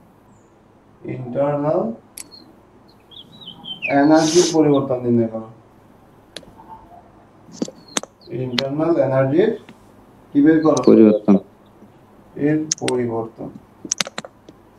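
A young man speaks calmly in short phrases, heard through an online call.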